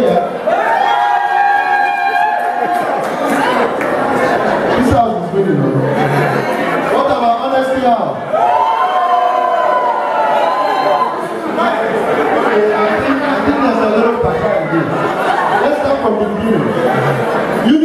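A man speaks with animation into a microphone, heard through loudspeakers in a large room.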